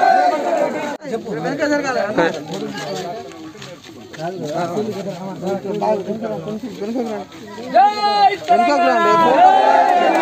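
A group of men chant and cheer.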